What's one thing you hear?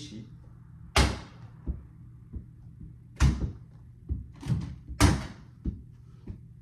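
Rubber balls bounce and thud on a floor indoors.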